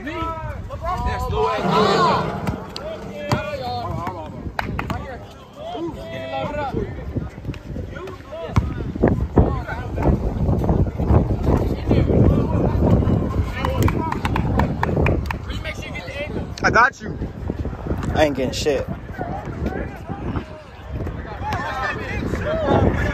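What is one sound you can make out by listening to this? Teenage boys shout and call out to each other outdoors.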